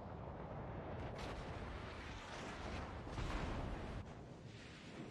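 Shells splash and explode in the water.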